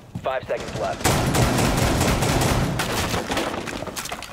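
Bullets smash and splinter a wall.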